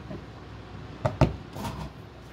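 A hand knocks lightly on a wooden table.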